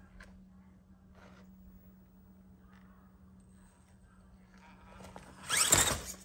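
A small electric motor whines softly as a toy truck crawls over rocks.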